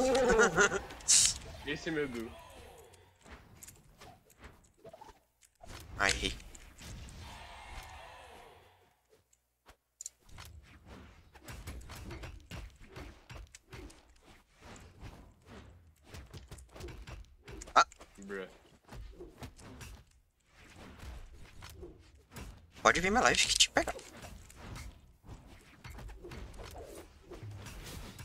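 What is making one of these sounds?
Rapid hits, slashes and whooshes of a fighting game sound.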